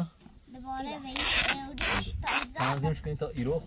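Tape rips noisily off a roll.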